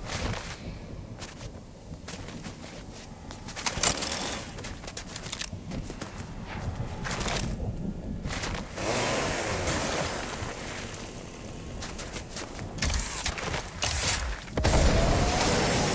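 Quick footsteps patter over soft ground.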